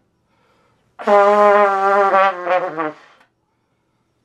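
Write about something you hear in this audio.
A trumpet plays a short phrase of notes close by, with a bright tone.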